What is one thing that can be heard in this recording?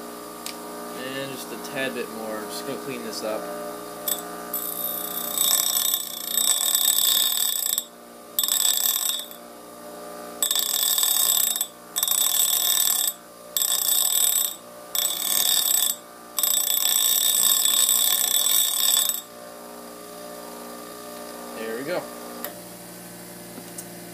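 A bench grinder hums steadily throughout.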